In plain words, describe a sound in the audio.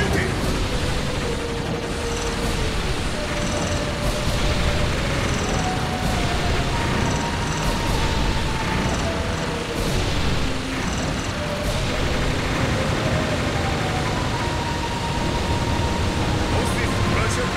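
Aircraft engines roar steadily.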